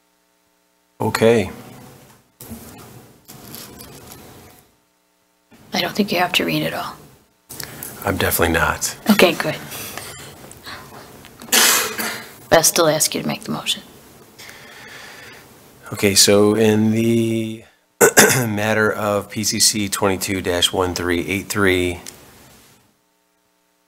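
A middle-aged woman speaks calmly through a microphone.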